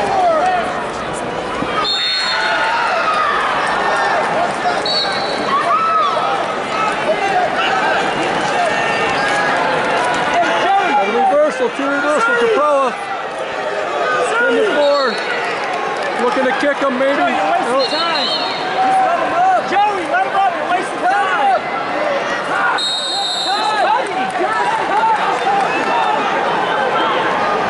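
A large crowd cheers and shouts throughout a big echoing arena.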